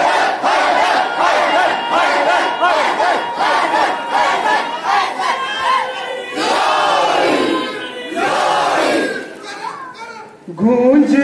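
A man chants loudly into a microphone, echoing through a large hall.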